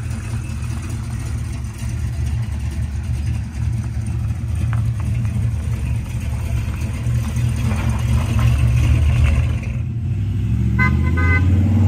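A car drives off over gravel, its engine rumbling louder.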